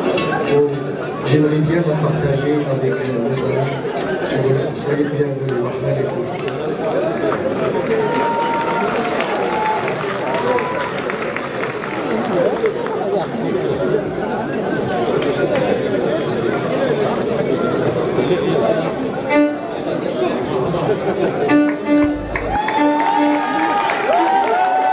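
A live band plays loudly on an outdoor stage.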